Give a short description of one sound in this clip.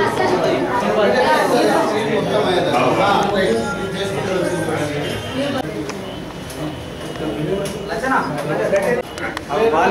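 A man talks calmly to a group, close by.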